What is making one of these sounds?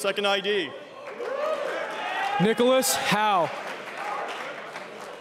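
A large crowd cheers and shouts.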